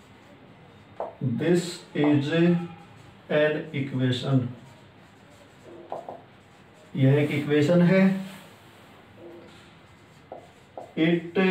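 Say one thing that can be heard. A man speaks calmly and clearly close by, explaining in short phrases.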